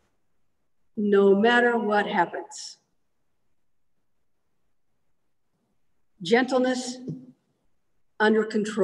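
A middle-aged woman reads aloud calmly over an online call, with pauses.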